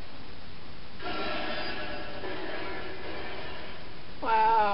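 A blast of magical crackling effects bursts from a television speaker.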